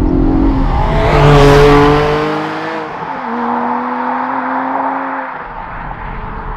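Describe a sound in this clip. A sports car races past close by with a loud rushing roar.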